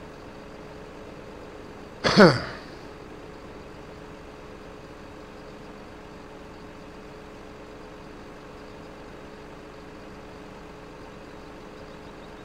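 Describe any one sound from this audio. A machine engine hums steadily.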